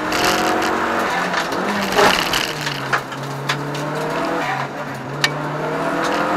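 A car engine roars loudly from inside the cabin, revving up and down.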